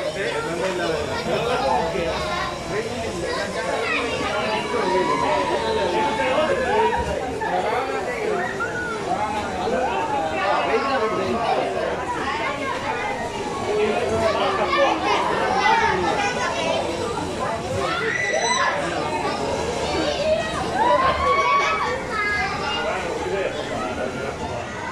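A fairground ride rumbles as it swings back and forth.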